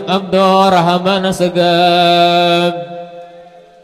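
A man chants loudly through a microphone and loudspeaker.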